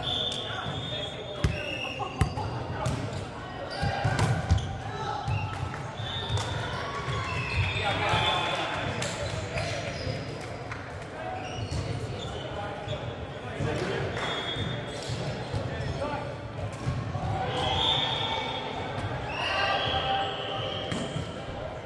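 Men call out and talk during play.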